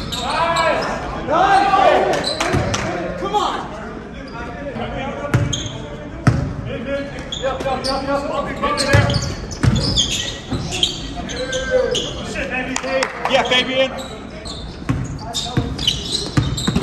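Men shout and call out to each other during play.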